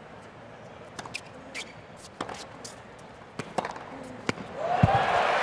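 A tennis ball is struck back and forth with sharp pops.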